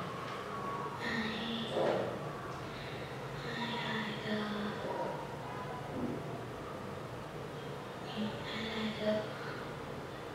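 A young girl speaks quietly into a close microphone, pausing between phrases.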